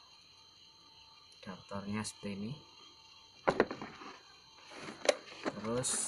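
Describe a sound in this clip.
A plastic cable and adapter clatter as they are lifted out.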